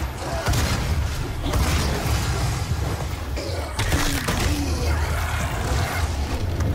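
A shotgun fires in loud, booming blasts.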